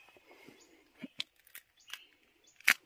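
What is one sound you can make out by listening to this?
A mushroom cracks as a hand breaks it off bark.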